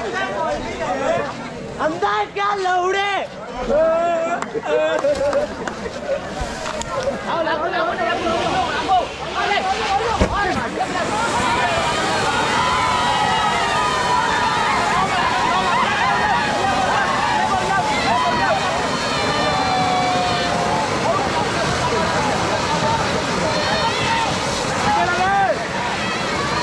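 A crowd of men shouts and cheers.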